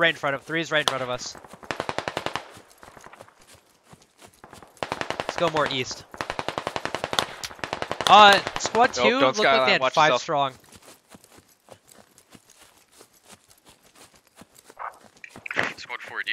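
Footsteps crunch on dry ground at a quick, steady pace.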